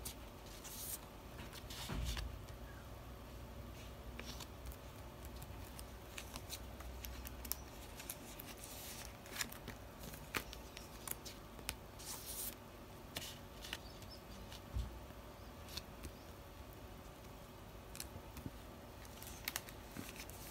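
Cards tap and click against plastic.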